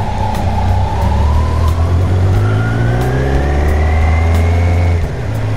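A motorcycle engine rumbles close by and slowly climbs in pitch as it speeds up.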